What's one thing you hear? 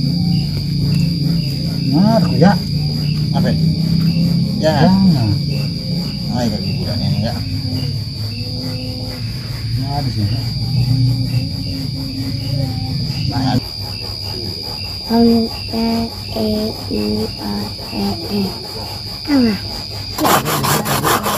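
Young men talk quietly nearby.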